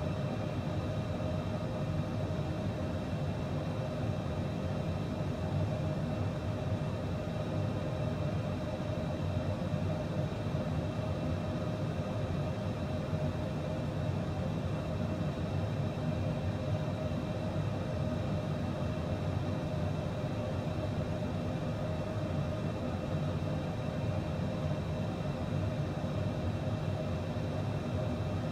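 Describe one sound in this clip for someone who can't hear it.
Jet engines hum and whine steadily.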